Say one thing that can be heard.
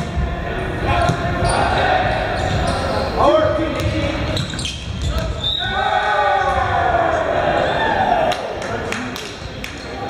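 Sneakers squeak on a wooden floor.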